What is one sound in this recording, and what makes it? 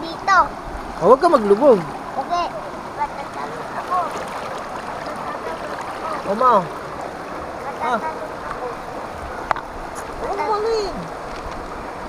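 A young child talks and squeals close by.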